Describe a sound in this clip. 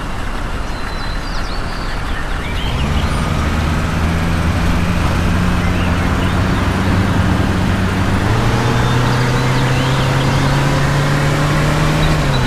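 A truck engine hums steadily and rises as the truck speeds up.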